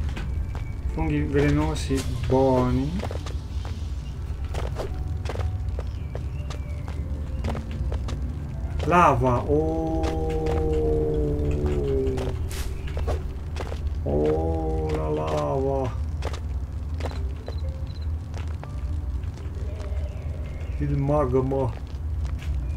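A young man speaks expressively into a close microphone, in short bursts.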